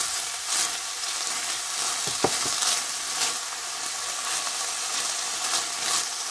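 Beans sizzle in oil in a pan.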